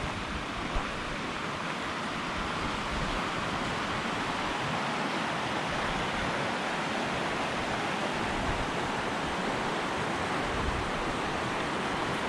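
A river rushes and splashes nearby over rocks, steady throughout.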